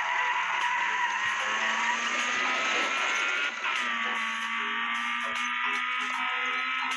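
A car engine hums steadily, its pitch rising and dipping as it accelerates and shifts gears.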